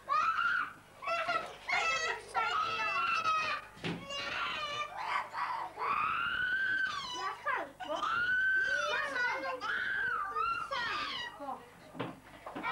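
A group of children and adults sing together in a long drawn-out tune.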